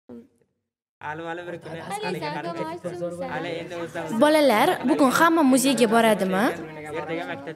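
Many children chatter together.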